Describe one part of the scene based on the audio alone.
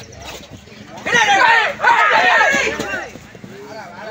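A crowd outdoors cheers and shouts loudly.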